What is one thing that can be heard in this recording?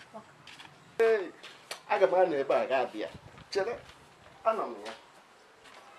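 An elderly man speaks loudly and mockingly nearby.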